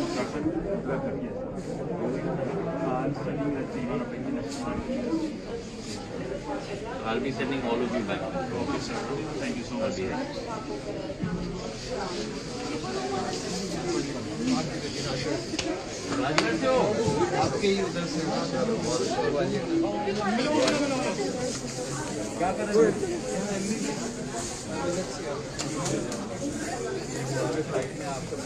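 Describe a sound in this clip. Several men talk over one another with agitation, close by.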